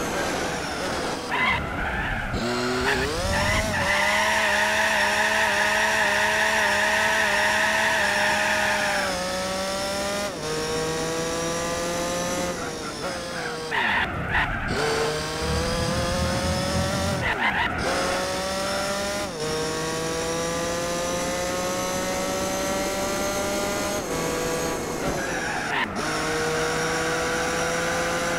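A racing car engine revs high, climbing through the gears and dropping sharply at each shift.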